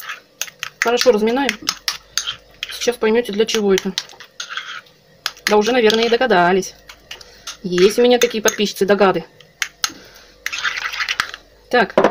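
A spoon stirs a soft mash in a bowl.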